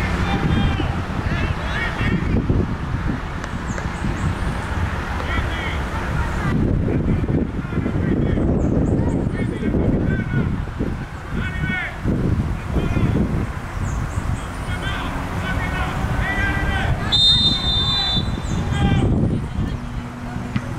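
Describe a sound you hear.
Young women call out from across the field.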